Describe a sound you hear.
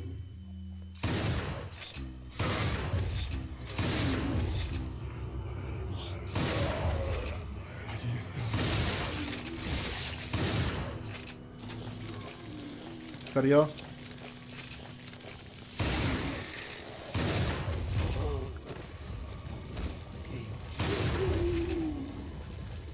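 Shotgun blasts boom loudly and echo, again and again.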